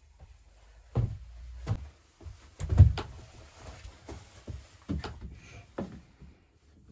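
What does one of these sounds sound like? Antlers knock and clatter against a wooden board.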